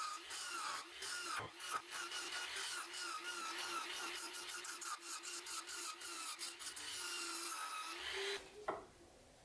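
A chisel scrapes and chatters against turning wood.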